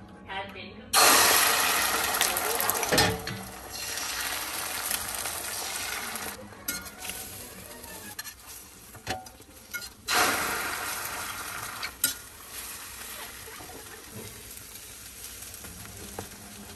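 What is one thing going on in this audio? Egg batter sizzles loudly as it is poured into a hot pan.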